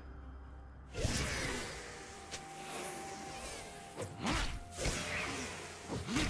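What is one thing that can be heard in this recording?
Video game fight effects whoosh, crackle and boom in quick bursts.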